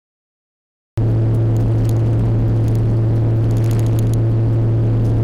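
An old car engine drones steadily while driving.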